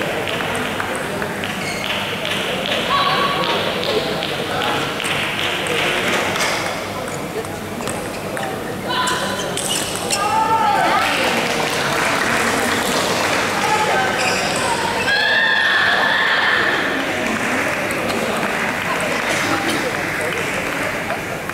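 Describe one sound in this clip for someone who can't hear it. A table tennis ball clicks back and forth off paddles and the table.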